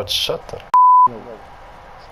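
A steady high test tone beeps briefly.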